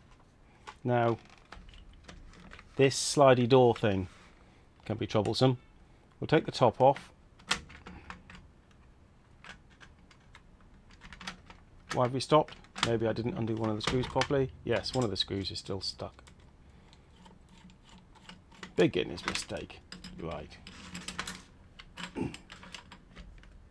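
Plastic parts click and rattle as a cassette is handled.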